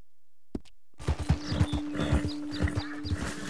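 Hooves thud steadily as a horse trots over grass.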